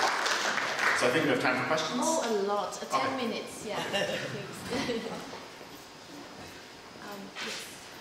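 A man speaks calmly through a microphone in a hall.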